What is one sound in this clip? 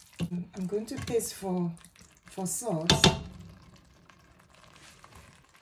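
A spatula stirs a thick stew in a steel pot.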